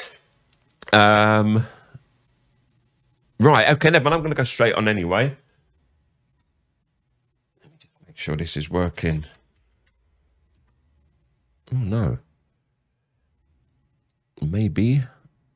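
An older man talks with animation into a close microphone, in short bursts with pauses.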